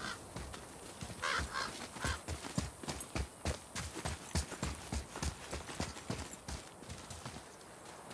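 Footsteps thud quickly through grass and brush.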